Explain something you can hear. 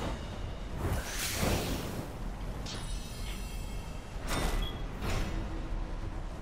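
Magical spell effects whoosh and crackle in bursts.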